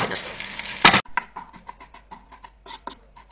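A knife chops herbs on a wooden board with quick taps.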